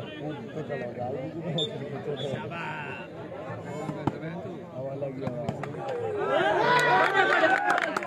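A crowd of men chatters and shouts outdoors.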